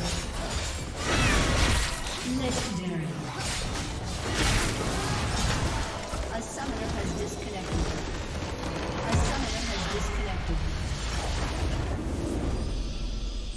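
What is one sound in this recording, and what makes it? Video game spells whoosh and crash during a hectic battle.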